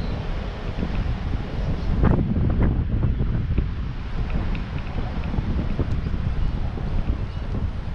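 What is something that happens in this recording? Bicycle tyres hum and rattle on a paved path.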